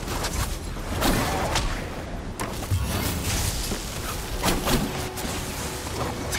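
Blades slash and clang in quick strikes.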